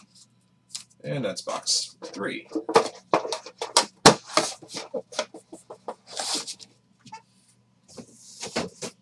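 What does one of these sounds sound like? Card packaging rustles and crinkles in hands.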